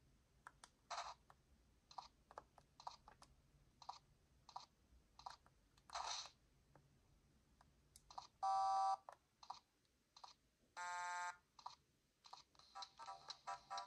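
A handheld game console plays short electronic beeps and chirps through its tiny speaker.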